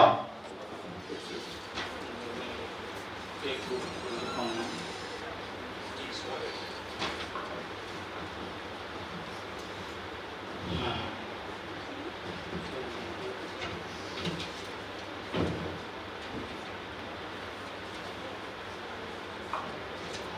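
An elderly man reads out slowly into a microphone.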